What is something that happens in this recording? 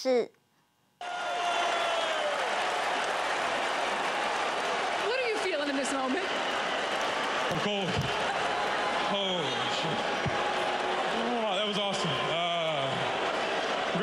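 A large arena crowd roars and cheers loudly.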